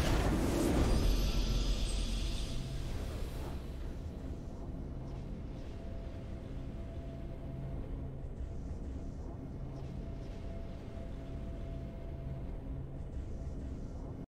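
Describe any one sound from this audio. A triumphant fanfare plays.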